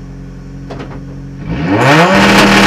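A four-cylinder race car engine idles, heard from inside the cockpit.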